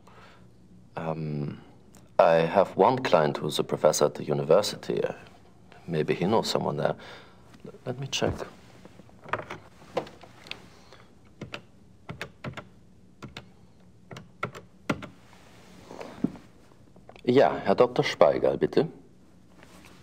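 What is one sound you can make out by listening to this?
A man speaks calmly and firmly.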